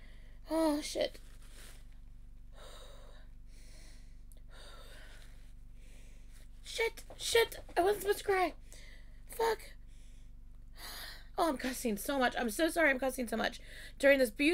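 A young woman sniffles and sobs.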